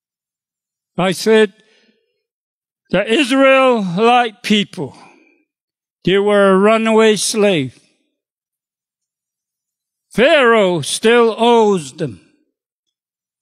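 An elderly man speaks with feeling into a microphone, in short phrases broken by pauses.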